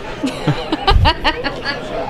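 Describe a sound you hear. A woman laughs.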